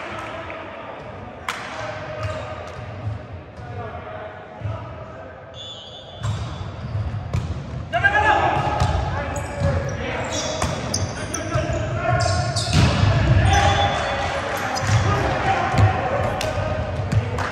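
Sneakers squeak on the hardwood floor.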